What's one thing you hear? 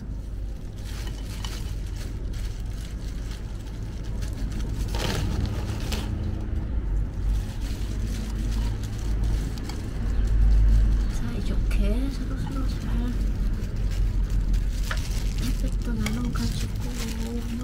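Hands press and pat soil in a pot.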